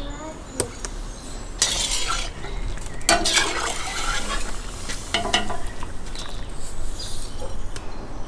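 A metal ladle clatters as meat drops onto a plate.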